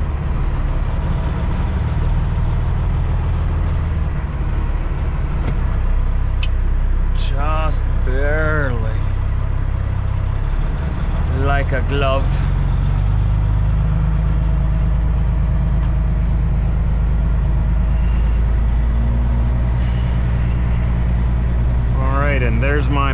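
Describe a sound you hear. A truck's diesel engine rumbles steadily up close.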